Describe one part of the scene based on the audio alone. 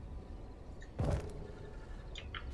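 A heavy thump sounds as something is set down.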